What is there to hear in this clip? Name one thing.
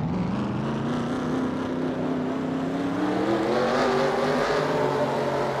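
A race car engine roars steadily and rises in pitch as it speeds up.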